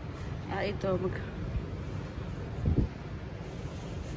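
A hand squeezes a soft plush pillow with a faint rustle.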